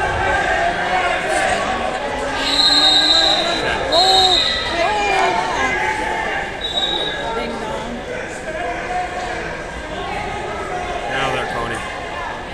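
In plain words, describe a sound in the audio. Wrestlers thud and scuffle on a mat.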